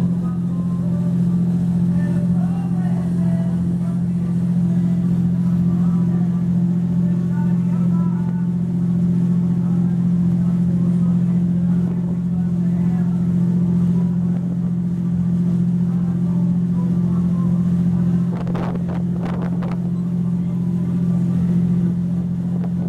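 A boat engine drones steadily and low.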